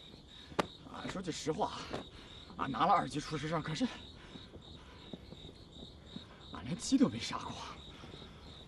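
A man speaks in a low, tense voice nearby.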